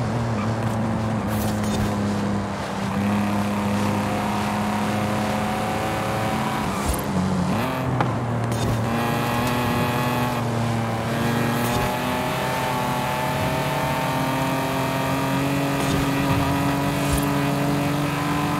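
A car engine roars steadily at high revs, dipping briefly as gears shift.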